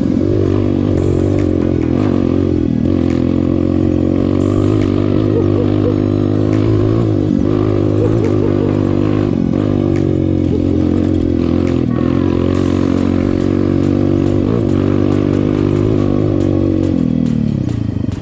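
A motorcycle engine hums steadily up close as it rides along.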